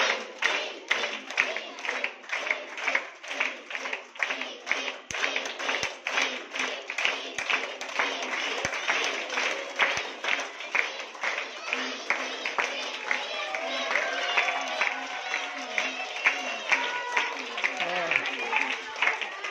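A crowd of girls claps rhythmically, close by.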